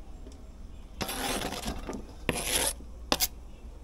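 A knife blade scrapes food off a plastic board into a metal bowl.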